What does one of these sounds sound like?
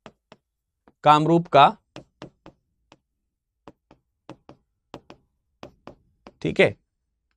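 A man speaks with emphasis into a close microphone.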